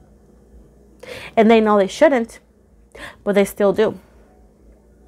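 A young woman speaks expressively close by.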